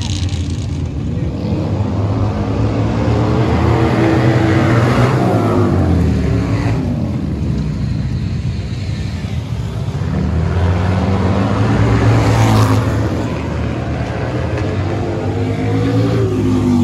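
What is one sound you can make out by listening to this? Small racing kart engines buzz and rev as the karts race past on a dirt track.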